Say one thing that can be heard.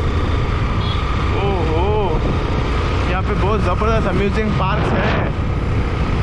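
Another motorcycle passes close by.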